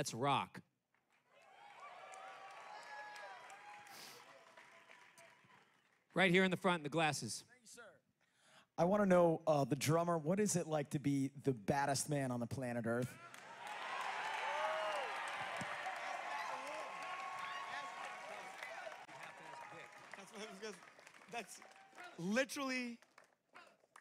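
A large audience cheers and applauds.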